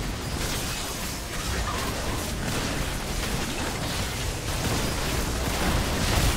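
Magic spells crackle and boom in a fast game battle.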